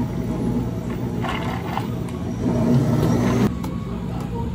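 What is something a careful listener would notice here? Water pours over ice in a plastic cup.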